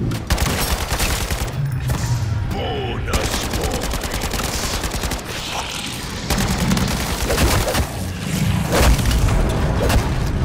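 Rapid gunfire cracks in quick bursts.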